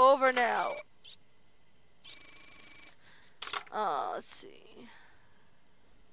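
Short electronic game sound effects blip and chime.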